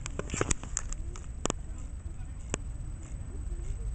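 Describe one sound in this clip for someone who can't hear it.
A small toy robot's motor clicks and ticks faintly.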